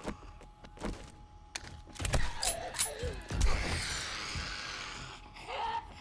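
Gunshots fire in quick bursts indoors.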